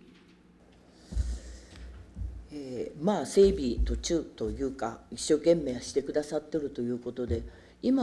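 A middle-aged woman speaks steadily into a microphone.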